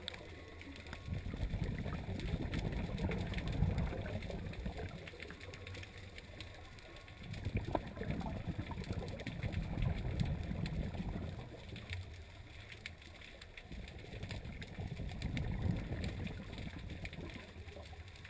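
Air bubbles from a diver's breathing gurgle and rush underwater in recurring bursts.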